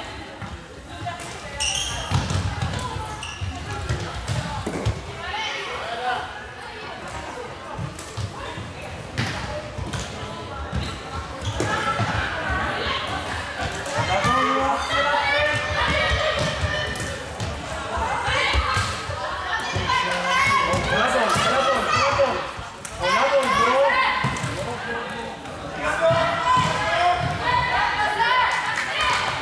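Players call and shout to each other across a large echoing hall.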